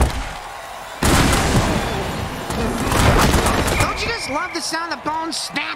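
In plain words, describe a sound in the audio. Armored players crash together in a heavy tackle.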